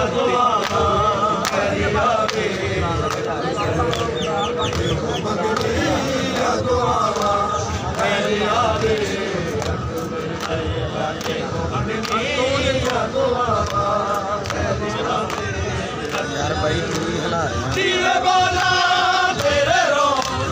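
Men beat their bare chests in a steady rhythm.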